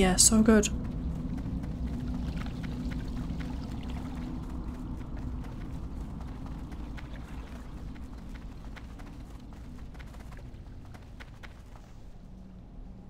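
Footsteps patter softly on dirt.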